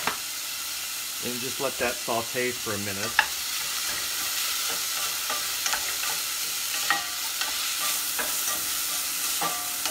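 A wooden spoon stirs and scrapes in a pan.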